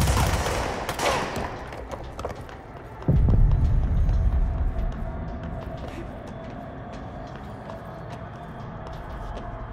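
Footsteps run on a hard stone floor.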